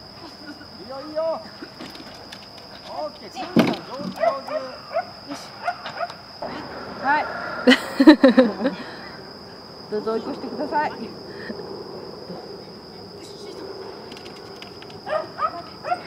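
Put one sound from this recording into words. A young woman calls out encouragingly to a dog, outdoors.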